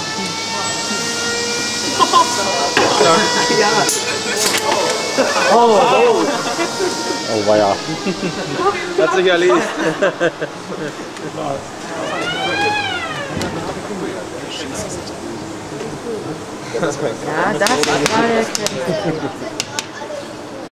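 People chatter nearby.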